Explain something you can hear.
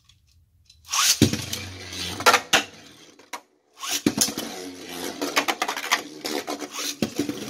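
Spinning tops clash and grind in a plastic stadium.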